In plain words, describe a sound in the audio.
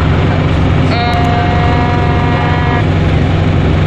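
A teenage boy hums a sustained note close by.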